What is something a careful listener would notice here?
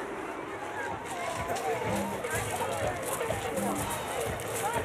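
A crowd of children and adults chatters and shouts nearby outdoors.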